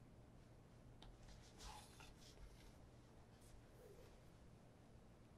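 Shoelaces rustle and slide softly as they are pulled.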